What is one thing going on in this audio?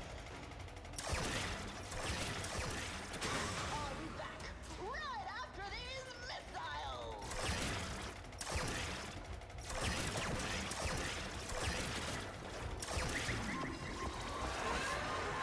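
An energy weapon fires in loud hissing bursts.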